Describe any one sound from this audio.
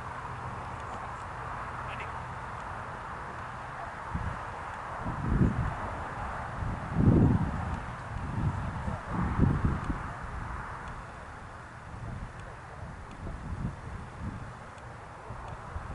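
Wind gusts across the microphone outdoors.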